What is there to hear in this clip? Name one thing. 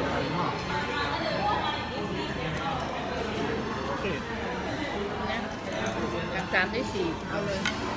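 Diners chatter in the background of a busy room.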